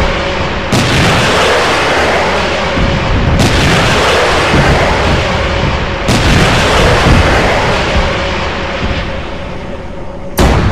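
Loud explosions boom one after another and rumble away.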